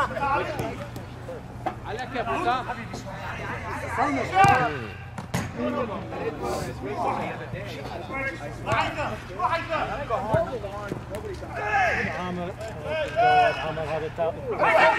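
Men shout and call out to each other across an open outdoor pitch.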